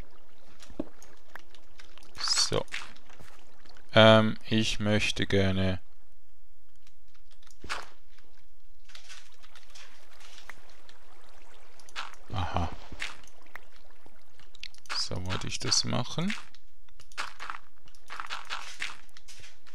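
Blocks of dirt and stone crunch as they are dug out, again and again.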